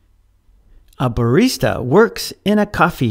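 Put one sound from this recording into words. A man speaks clearly and expressively, close to a microphone.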